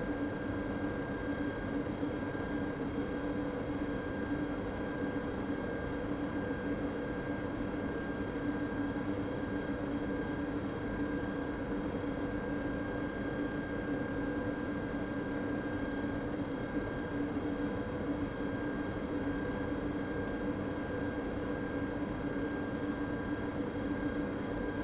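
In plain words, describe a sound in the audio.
A stationary electric train hums steadily while idling.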